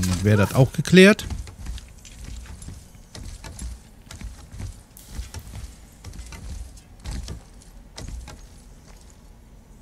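Wooden rungs creak and knock as a climber goes up a ladder.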